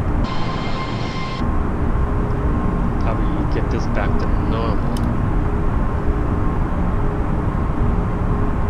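A jet airliner's engines roar steadily.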